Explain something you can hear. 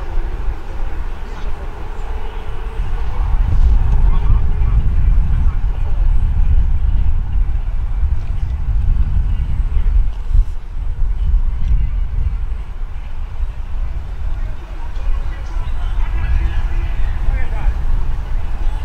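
Wind blows steadily outdoors, rumbling against the microphone.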